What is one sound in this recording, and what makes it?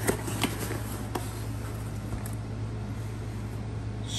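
A cardboard box lid is lifted open.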